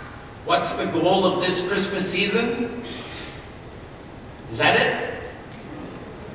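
A man speaks animatedly through a microphone in a large echoing hall.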